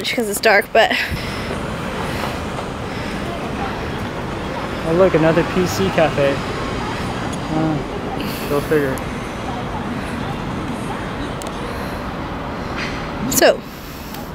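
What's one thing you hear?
Traffic hums steadily on a street outdoors.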